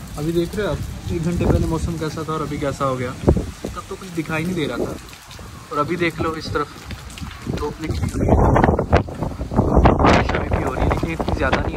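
Wind blows outdoors.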